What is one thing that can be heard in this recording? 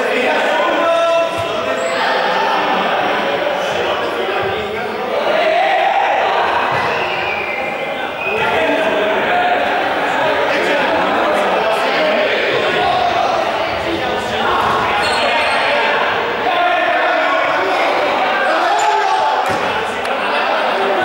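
Young people shout and call out throughout a large echoing hall.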